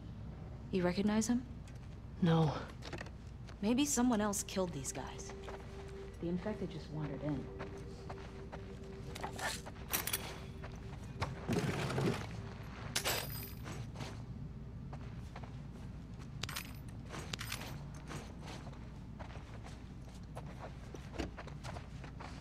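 Footsteps creak on a wooden floor.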